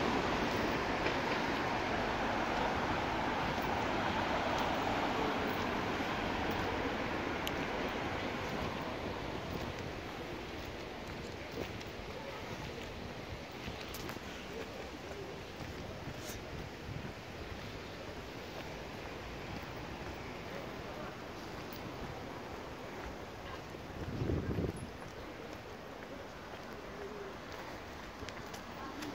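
Traffic hums steadily in the distance outdoors.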